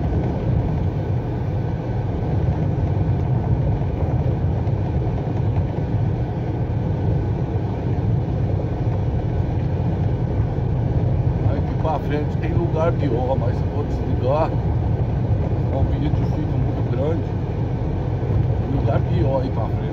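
Tyres rumble over a cracked, bumpy road surface.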